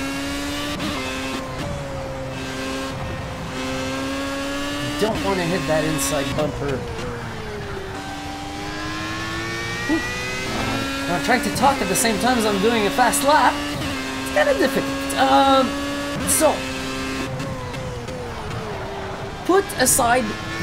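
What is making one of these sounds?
A racing car engine whines steadily, its pitch rising and falling with gear changes.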